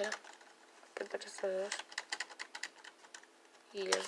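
Fingers press keys on a computer keyboard.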